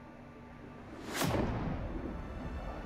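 A jet aircraft roars past with a loud rushing whoosh.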